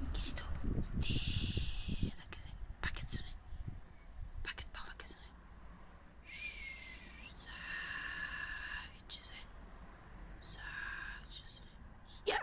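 A dog whines in short high whimpers.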